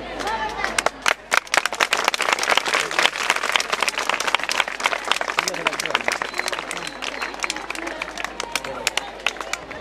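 A crowd claps and cheers loudly.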